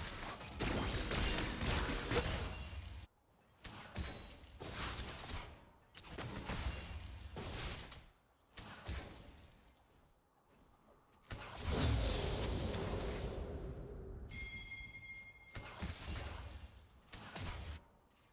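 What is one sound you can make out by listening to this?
Magic blasts and weapon hits crackle and burst in quick clashes.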